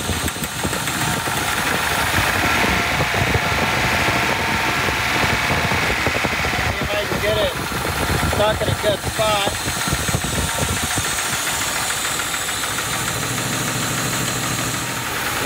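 An engine idles with a steady rumble.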